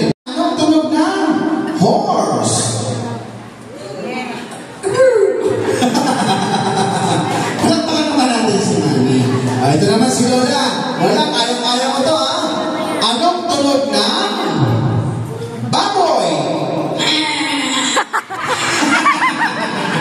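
A man sings through a microphone and loudspeaker.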